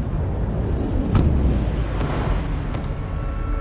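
Wind rushes loudly past a falling figure.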